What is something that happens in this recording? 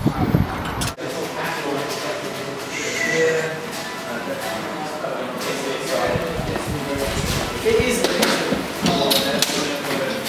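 Several men talk at a distance.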